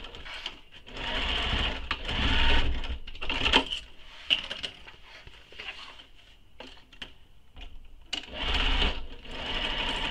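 A sewing machine runs in short bursts.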